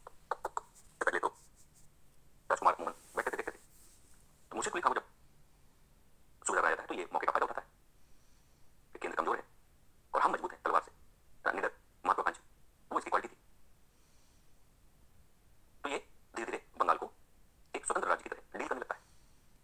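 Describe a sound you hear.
A middle-aged man speaks with animation through a microphone, in bursts with pauses.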